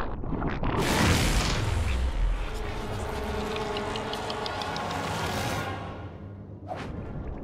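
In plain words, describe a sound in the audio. A huge rumbling blast swells and then fades away.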